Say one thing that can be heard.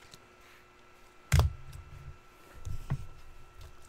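Hands handle stacks of cards on a table, with dull thumps and clicks.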